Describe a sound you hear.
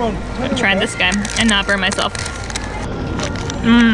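Paper wrapping crinkles.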